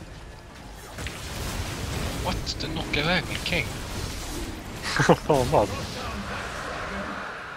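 Magic spells whoosh and crackle in a battle.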